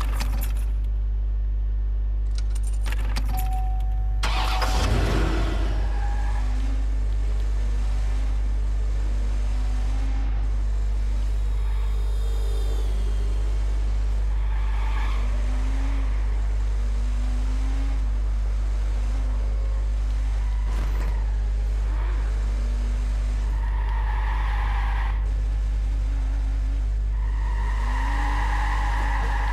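A car engine revs up and down as the car speeds along.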